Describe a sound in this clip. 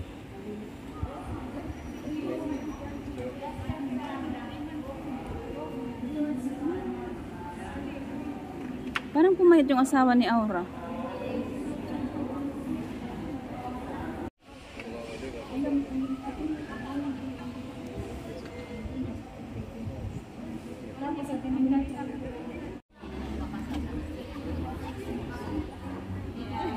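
Men and women talk quietly in a large echoing hall.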